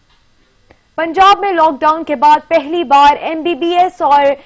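A young woman reads out news calmly and clearly into a microphone.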